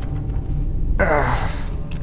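An electric charge crackles and sizzles loudly.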